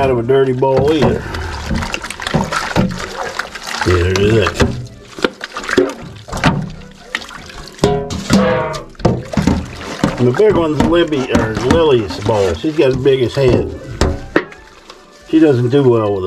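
Hands scrub a metal bowl in sloshing water.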